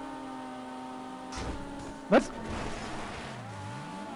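A car thuds over rough ground.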